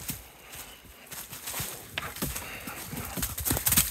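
A dog runs through dry leaves.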